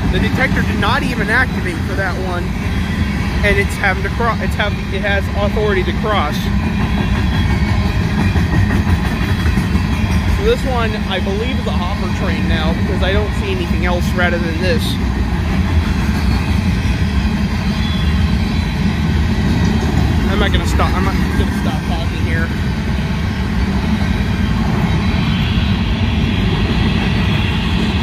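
A crossing bell rings over and over.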